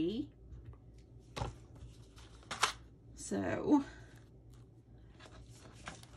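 Stiff paper pieces tap and slide softly on a hard mat.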